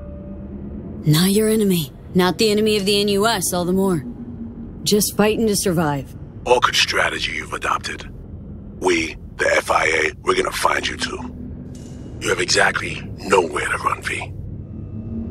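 A middle-aged man speaks in a low, calm voice over a call.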